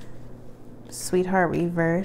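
A playing card slides across a cloth surface.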